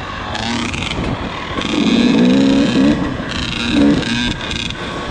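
A dirt bike engine revs and buzzes up close, rising and falling in pitch.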